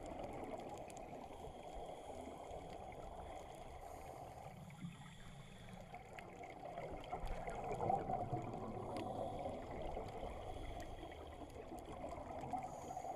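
A diver's breath bubbles burble and gurgle loudly underwater.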